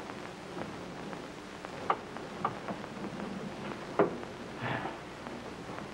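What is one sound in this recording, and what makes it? A man speaks quietly through an old, hissy recording.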